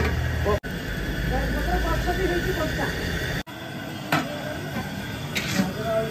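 A metal ladle scrapes and stirs grain in a large metal pan.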